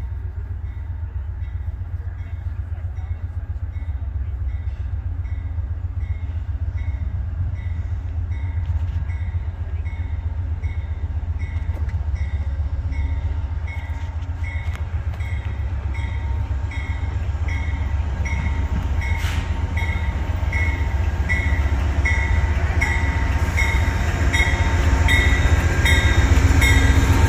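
A diesel train approaches, its deep rumble growing louder.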